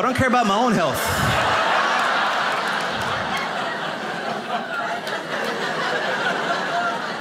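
An audience applauds in a large room.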